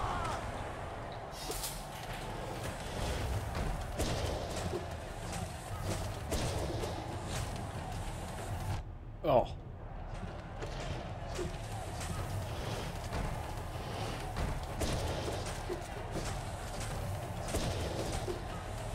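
Game sound effects of slashing and impacts ring out repeatedly.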